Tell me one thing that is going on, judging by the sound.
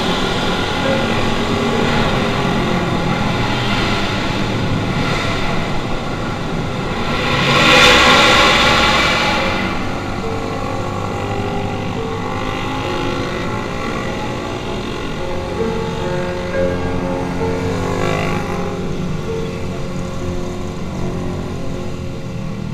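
A motorcycle engine hums steadily close by as it rides.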